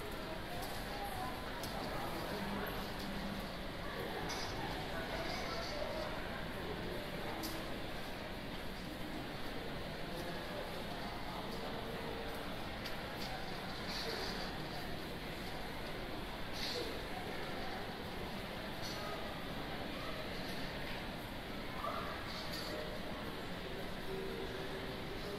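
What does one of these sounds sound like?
A crowd murmurs indistinctly in the background.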